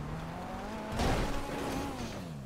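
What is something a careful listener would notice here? A car crashes hard into rocks.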